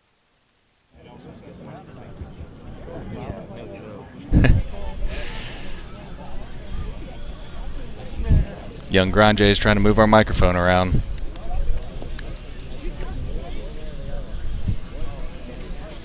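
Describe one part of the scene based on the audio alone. A crowd murmurs and cheers outdoors.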